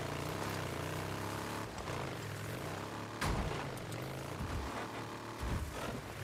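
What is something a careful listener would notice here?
A motorbike engine hums steadily, rising and falling as the bike rides over rough ground.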